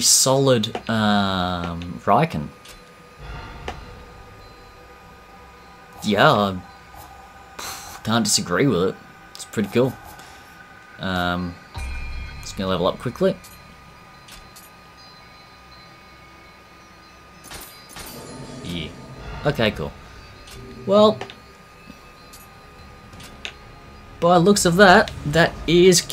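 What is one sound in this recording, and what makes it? Short menu sounds click and chime as selections change.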